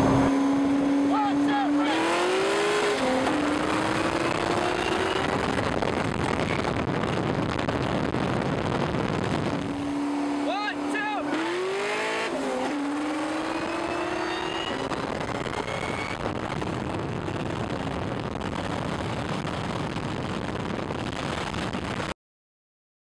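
A sports car engine roars loudly as it accelerates hard, revving up through the gears.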